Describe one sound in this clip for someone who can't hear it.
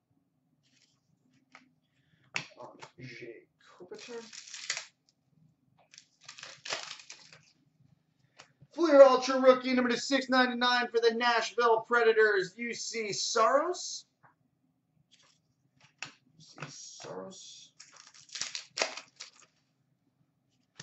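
Trading cards rustle and click as a hand shuffles through them.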